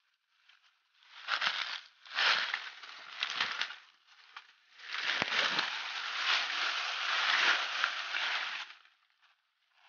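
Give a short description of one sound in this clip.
A large lizard scurries through dry leaves, making them rustle and crackle.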